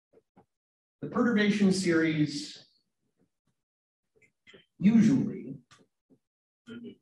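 A man lectures calmly, heard through an online call.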